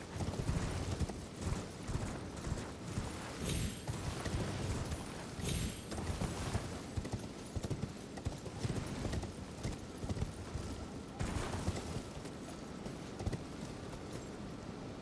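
Horse hooves thud quickly over grass and rock.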